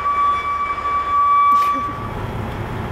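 A forklift motor whirs as it moves.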